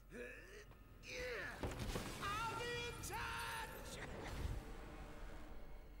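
A loud explosion booms.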